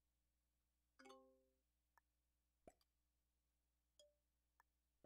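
Short electronic chimes and clicks sound now and then.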